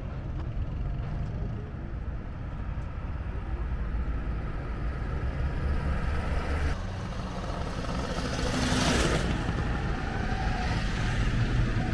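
Cars drive along a road.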